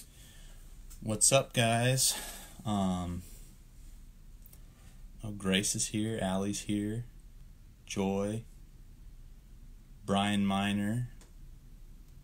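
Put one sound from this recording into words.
A young man speaks calmly and close by, with pauses.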